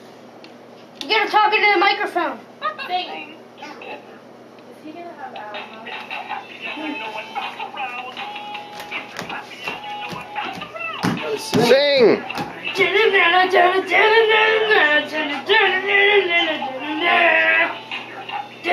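A little girl sings loudly through an echoing toy microphone.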